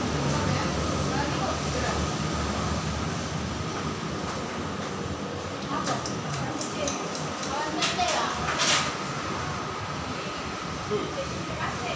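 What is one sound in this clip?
A ceiling fan whirs steadily with a low hum.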